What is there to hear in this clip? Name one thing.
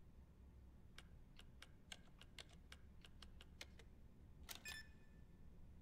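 Keypad buttons click and beep in quick succession.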